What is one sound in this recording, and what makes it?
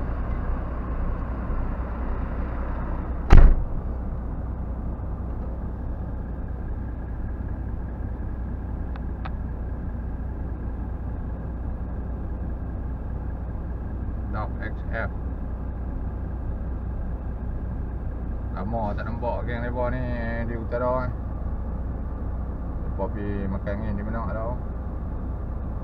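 A vehicle engine rumbles low and steady while driving slowly.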